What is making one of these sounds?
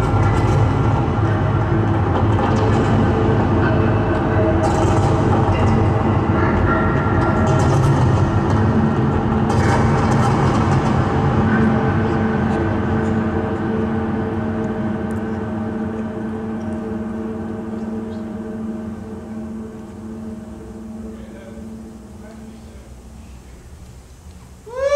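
Electronic synthesizer tones drone and pulse, slowly fading away.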